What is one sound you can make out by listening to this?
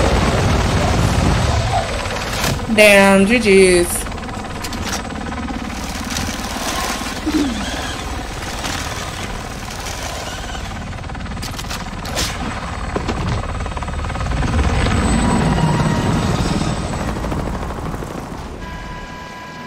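A helicopter's engine and rotor roar steadily.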